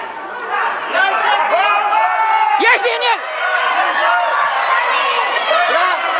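Children shout and cheer excitedly nearby, echoing in a large hall.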